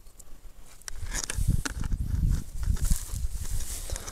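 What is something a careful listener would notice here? Footsteps crunch and rustle on dry grass close by.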